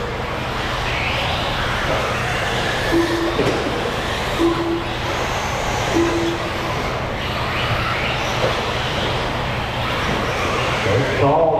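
Small electric motors whine as racing model cars speed around a track.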